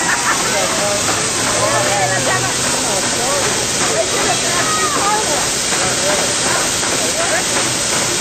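A fire hose sprays a strong, steady jet of water.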